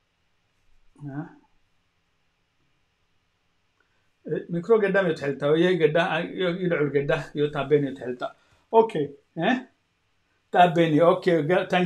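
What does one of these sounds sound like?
A middle-aged man speaks calmly and close over an online call.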